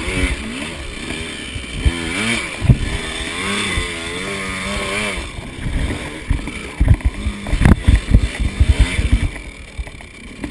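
A two-stroke dirt bike engine revs hard, climbing a rocky trail.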